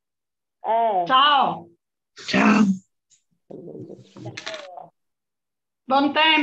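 An elderly woman speaks with animation over an online call.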